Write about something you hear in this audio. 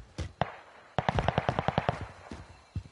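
A rifle's bolt and metal parts click and clack rapidly.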